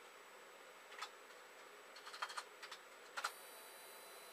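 Small plastic connectors click softly as a hand handles them.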